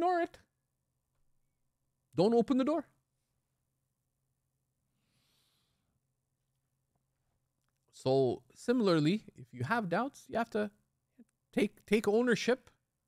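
A middle-aged man speaks calmly into a close microphone, with long pauses.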